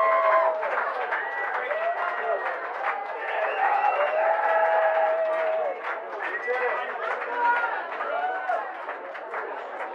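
A band plays live music.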